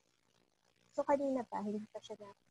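A second young woman speaks calmly over an online call.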